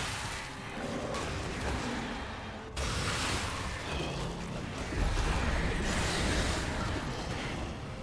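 Game sound effects of a fantasy battle clash and whoosh.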